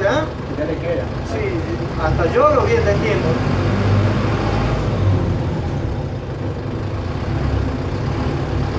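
A bus engine rumbles steadily while the bus drives.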